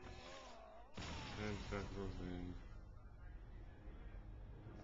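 An explosion booms with crackling debris.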